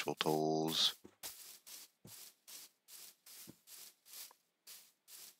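Footsteps pad softly over grass.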